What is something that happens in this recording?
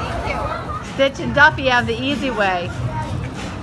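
Young children talk excitedly nearby.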